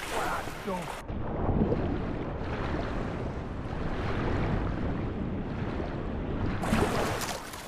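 Water rushes and bubbles in a muffled way underwater.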